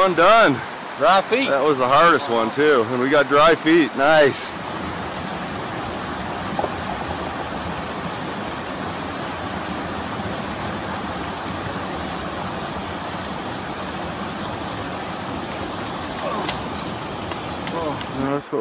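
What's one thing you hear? A rushing stream flows steadily over rocks.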